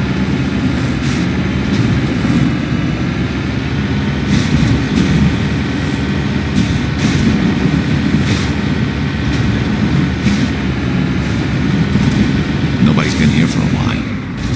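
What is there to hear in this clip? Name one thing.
Tyres thump and crunch over bumpy ground.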